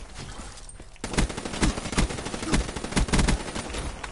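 A rifle fires in rapid bursts, with loud sharp cracks.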